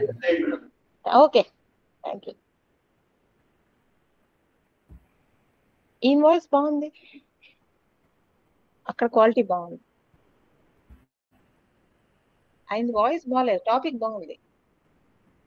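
A woman speaks in short phrases with pauses, heard through an online call.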